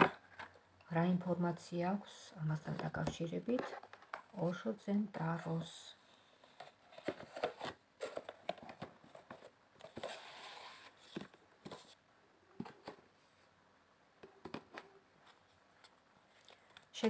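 Playing cards rustle and tap as they are handled.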